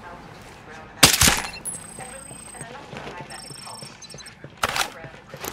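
Pistol shots ring out sharply, with a short echo.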